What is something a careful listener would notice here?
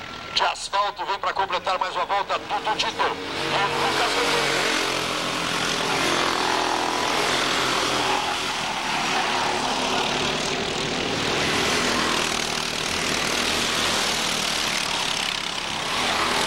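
Kart engines buzz and whine loudly as karts race past.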